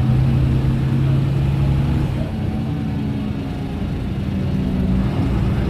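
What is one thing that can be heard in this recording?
A Leyland National bus's diesel engine drones from inside the bus as it drives along.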